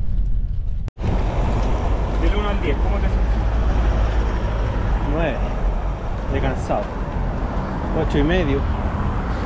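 Tyres roll over a wet road.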